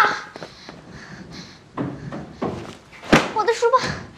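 Footsteps thud on wooden stairs.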